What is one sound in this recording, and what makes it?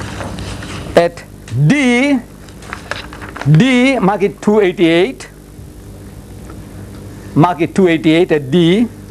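An elderly man reads aloud with emphasis.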